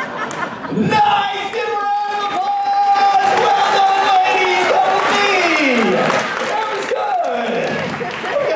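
A man sings over a microphone in a large hall.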